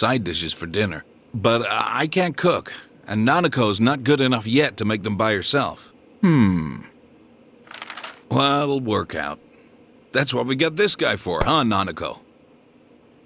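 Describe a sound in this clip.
A man speaks in a relaxed, low voice.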